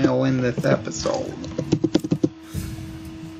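Game menu buttons click several times in quick succession.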